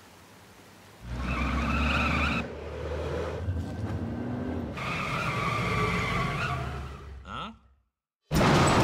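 A van engine rumbles as the van pulls up close.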